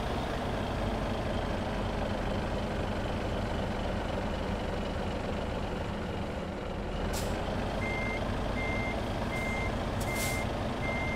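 A truck engine idles with a deep, steady rumble.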